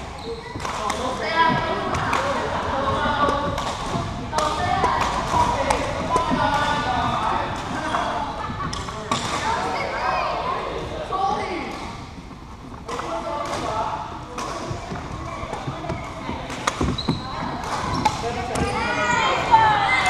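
Young women chatter and call out across the hall.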